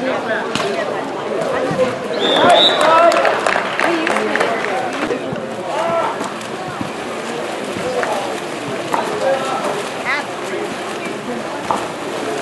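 Water splashes as swimmers thrash and kick in a pool.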